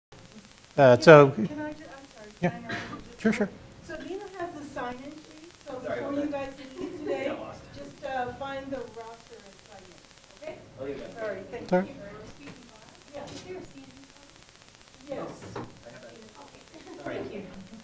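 A middle-aged man lectures calmly through a microphone in a room with a slight echo.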